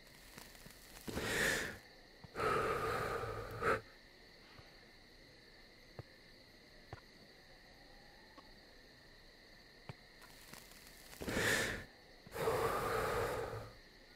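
A rushing whoosh bursts out loudly, twice.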